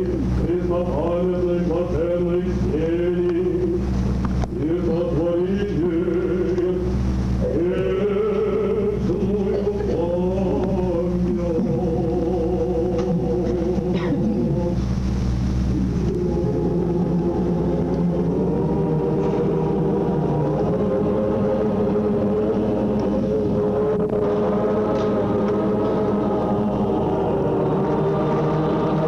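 Voices sing Orthodox liturgical chant in a large echoing hall.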